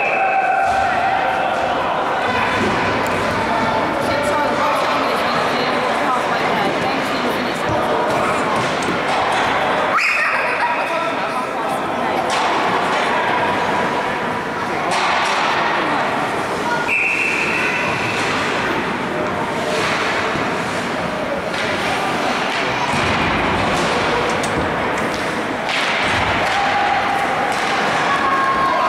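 Ice skates scrape and glide across the ice in a large echoing rink.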